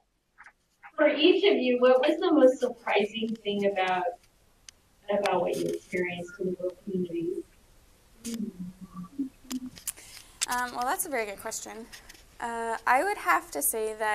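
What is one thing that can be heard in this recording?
A young woman speaks to a small audience in a room.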